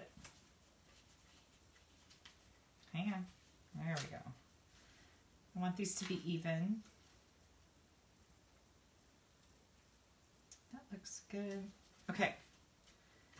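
Paper rustles softly as a card is handled.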